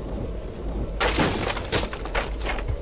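A wooden sliding door rattles open.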